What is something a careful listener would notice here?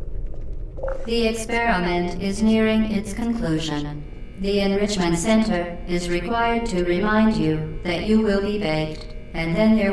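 A man talks through a headset microphone.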